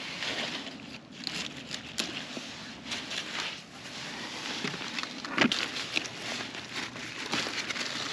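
Leaves rustle as hands reach into zucchini plants.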